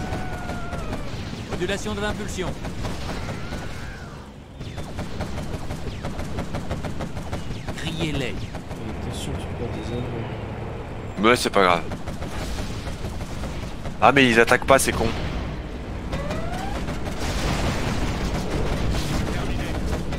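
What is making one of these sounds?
Explosions boom and gunfire rattles.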